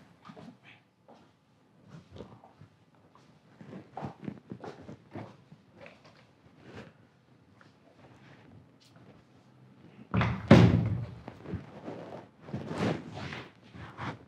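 High heels click on a hard floor.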